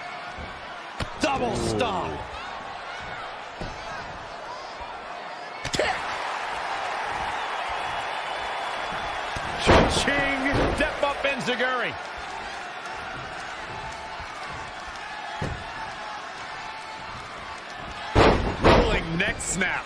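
Wrestlers' bodies thud heavily onto the ring mat.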